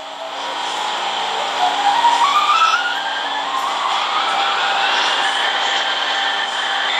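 A train's electric motor whines, rising steadily in pitch as it speeds up.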